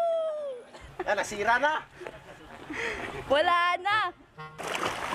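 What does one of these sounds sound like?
A young woman laughs loudly close by.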